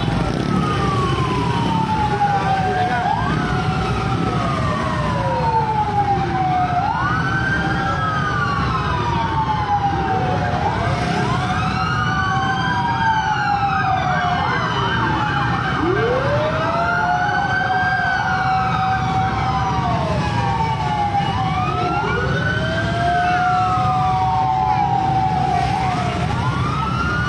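Vehicle engines rumble steadily nearby.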